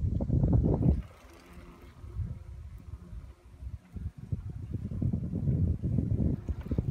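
Wind gusts and rumbles against a microphone on a moving bicycle.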